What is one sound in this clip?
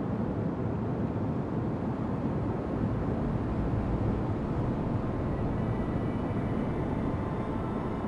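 A ship's engines rumble low and steady.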